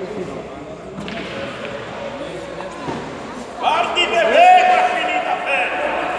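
Pool balls click together.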